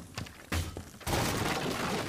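Wooden boards splinter and crash apart.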